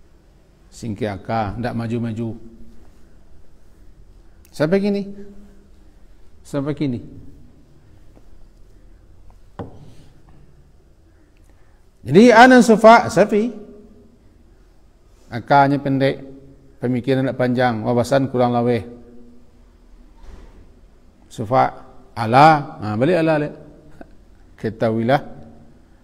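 A middle-aged man speaks calmly into a close microphone, in bursts with long pauses.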